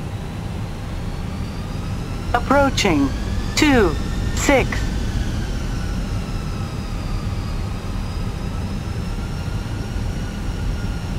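Airliner turbofan engines spool up with a rising whine for takeoff.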